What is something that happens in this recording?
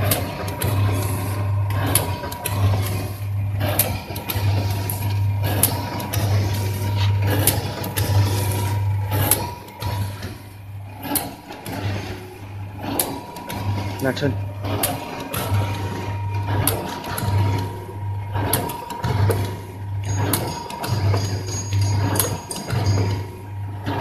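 A packing machine runs with a rhythmic hum and clatter.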